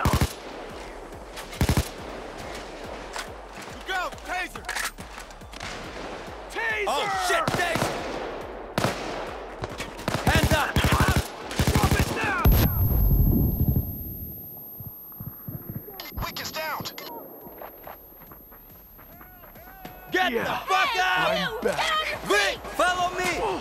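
Rifle gunfire rattles in short bursts.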